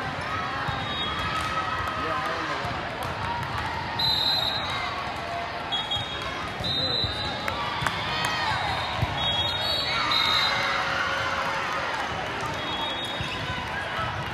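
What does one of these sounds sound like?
Shoes squeak sharply on a hard court floor.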